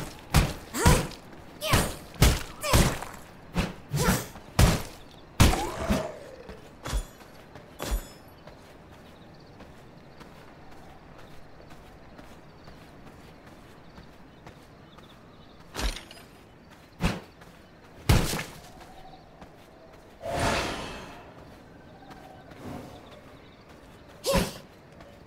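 A weapon slashes and strikes with sharp hits.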